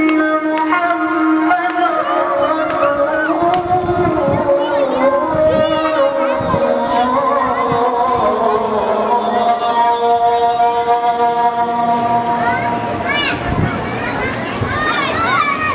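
A large crowd chants together in a steady, droning unison outdoors.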